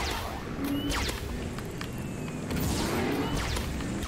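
An energy blast crackles sharply.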